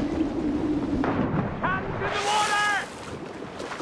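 A body plunges into water with a splash.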